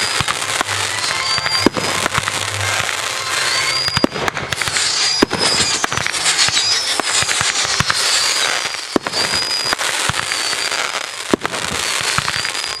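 Rockets whistle as they rise.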